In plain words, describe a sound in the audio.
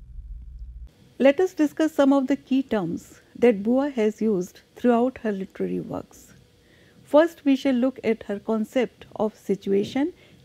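An elderly woman speaks calmly and clearly into a close microphone.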